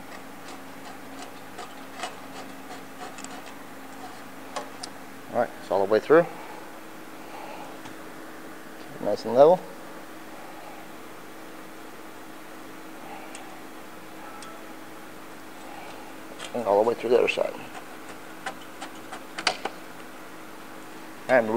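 Plastic zip ties click and rattle against metal.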